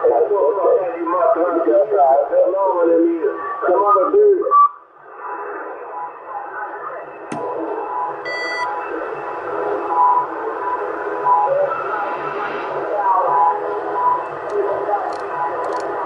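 Radio static hisses steadily from a loudspeaker.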